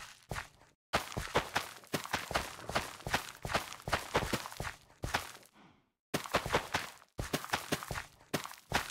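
Soft quick taps sound as seeds are pressed into soil.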